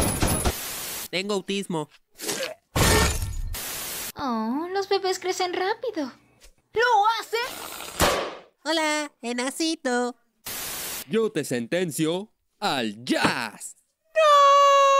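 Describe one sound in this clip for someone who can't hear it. A cartoon man speaks with animation in a high, silly voice.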